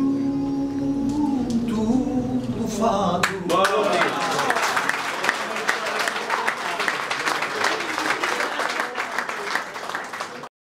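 Several acoustic guitars play a lively tune.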